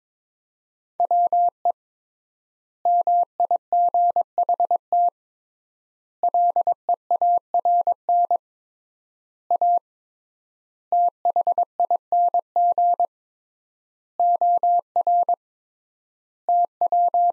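A Morse code key beeps out a steady high tone in quick short and long bursts.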